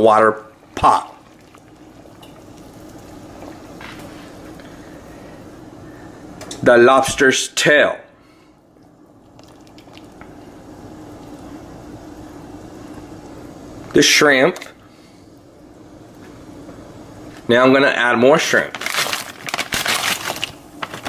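Water boils and bubbles steadily in a pot.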